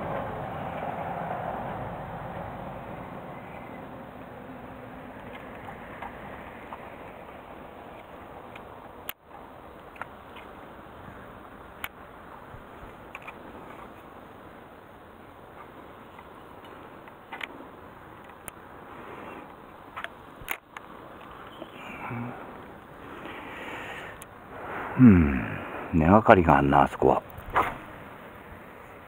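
Wind rushes softly across the microphone outdoors.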